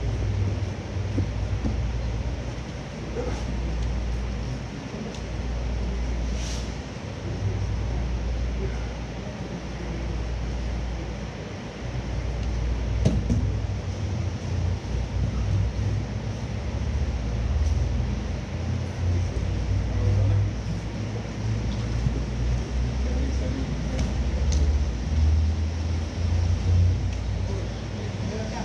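Bodies shuffle and thump on a mat as people grapple.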